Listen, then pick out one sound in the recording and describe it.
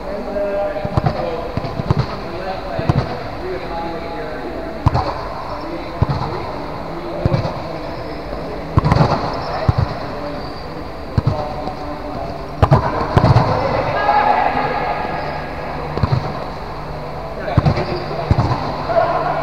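A volleyball is struck and thuds repeatedly, echoing in a large hall.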